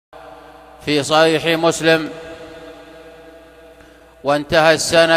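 A middle-aged man speaks slowly and solemnly into a close microphone.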